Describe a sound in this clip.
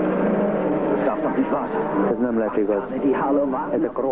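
Men shout nearby.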